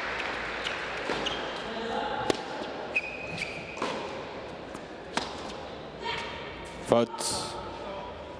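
A tennis ball bounces on the court.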